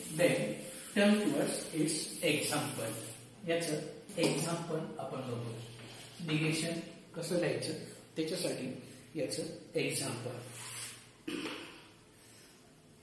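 An elderly man speaks calmly, as if lecturing, close by.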